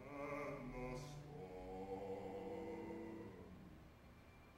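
Several men sing together in harmony, holding long notes before stopping.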